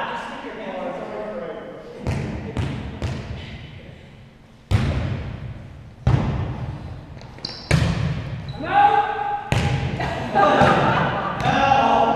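Adult men shout and call out to each other in an echoing hall.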